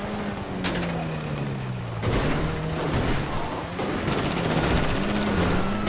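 A car engine hums and revs unevenly.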